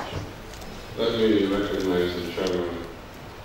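A man speaks slowly into a microphone over a loudspeaker.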